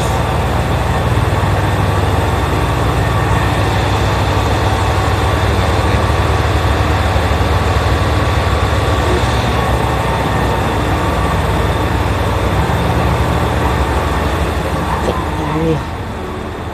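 A train engine hums steadily nearby.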